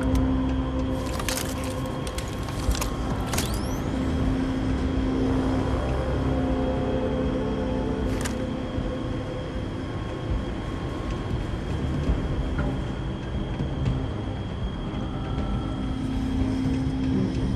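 A low machine hum drones steadily throughout.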